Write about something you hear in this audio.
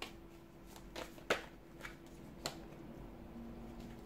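A card is laid down on a table with a light tap.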